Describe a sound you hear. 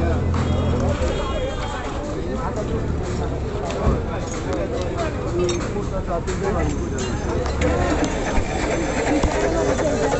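A crowd of men chatter all around outdoors.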